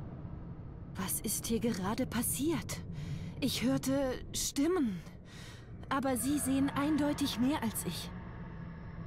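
A young woman speaks calmly and worriedly, close by.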